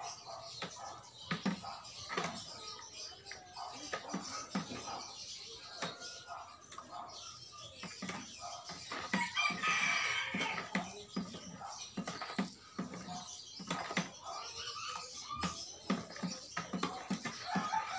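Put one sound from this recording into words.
A stick knocks and thuds in a plastic bucket, again and again.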